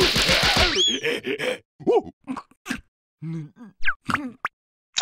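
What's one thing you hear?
A cartoon creature yelps and gasps in short bursts.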